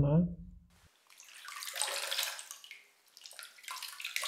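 Water runs from a tap and splashes over hands.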